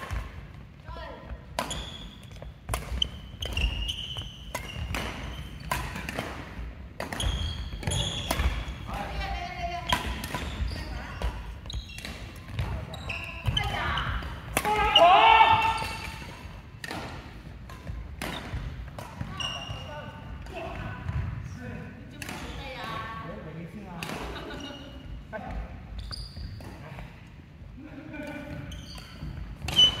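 Badminton rackets strike a shuttlecock in an echoing hall.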